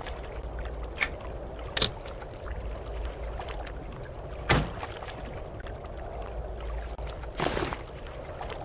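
Menu buttons click.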